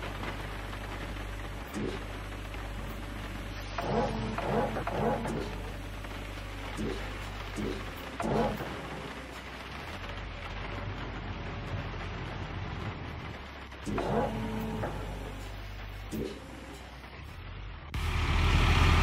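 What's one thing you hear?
An excavator engine idles with a steady low rumble.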